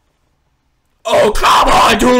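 A teenage boy shouts in surprise.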